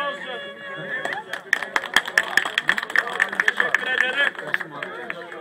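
A man claps his hands in rhythm.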